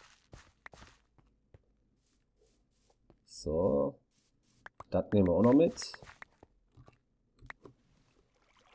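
Dirt crunches in short bursts as blocks are dug.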